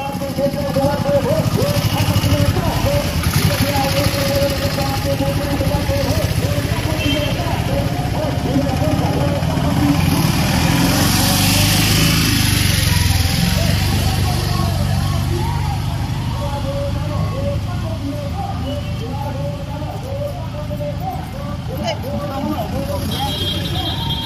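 A crowd of women chatter and call out outdoors.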